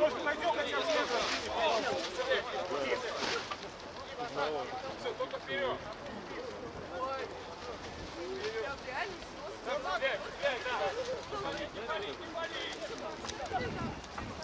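Men shout and call out to each other across an open field outdoors.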